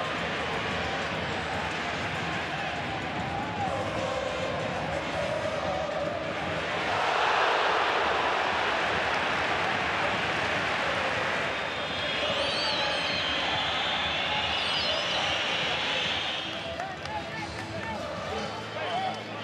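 A large stadium crowd roars and chants, swelling into loud cheering.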